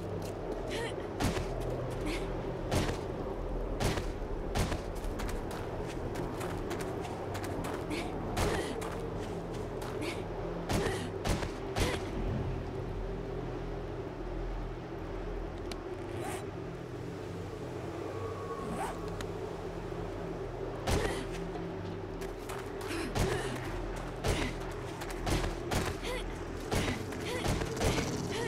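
Footsteps crunch on rubble.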